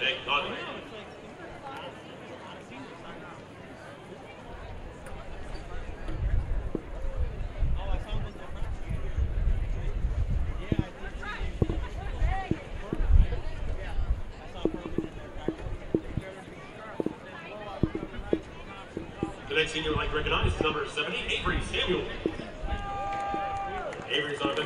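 A crowd murmurs and chatters outdoors in a large open stadium.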